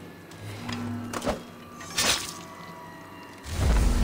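A blade slashes and stabs with sharp metallic swishes.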